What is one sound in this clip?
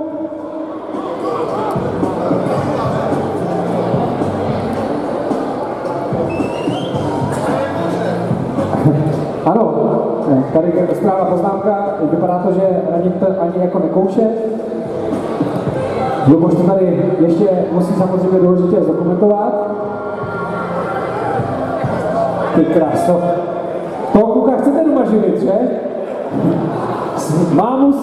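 A man talks with animation through a loudspeaker in a large echoing hall.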